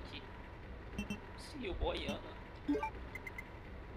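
Short electronic menu beeps sound as items are selected.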